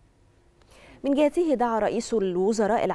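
A woman reads out calmly through a microphone.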